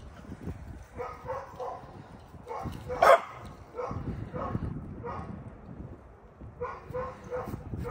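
Dogs bark and yip while playing close by.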